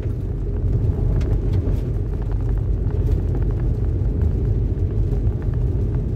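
A car engine rumbles steadily as the car drives.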